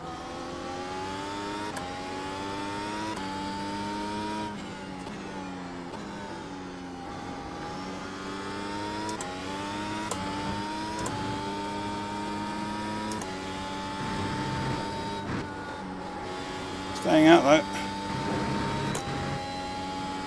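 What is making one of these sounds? A racing car engine screams loudly, rising in pitch and dropping with each gear change.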